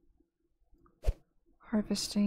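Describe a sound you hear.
A short interface click sounds as a menu switches.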